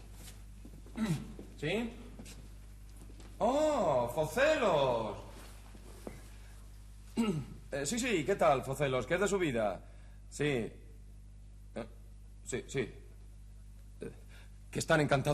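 A young man talks on a telephone with animation.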